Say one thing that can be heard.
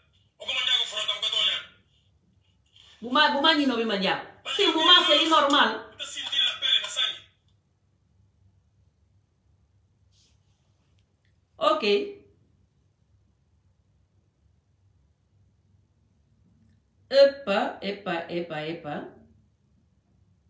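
A middle-aged woman speaks with animation close to the microphone, pausing between phrases.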